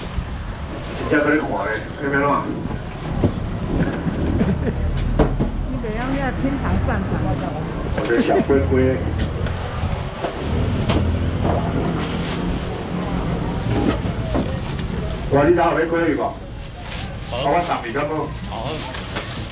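A busy market crowd chatters in the background.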